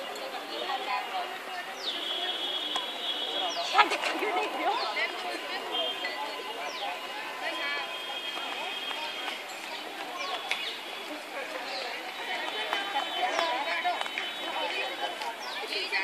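Bare feet thud and patter on grass as girls run.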